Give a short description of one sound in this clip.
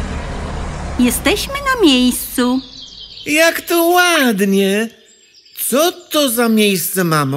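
A young woman speaks brightly and with animation.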